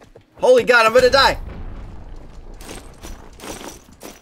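A boulder crumbles with a rumbling crash.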